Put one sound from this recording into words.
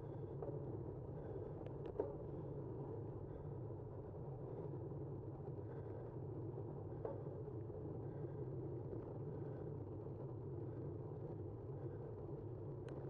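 Tyres roll on smooth pavement.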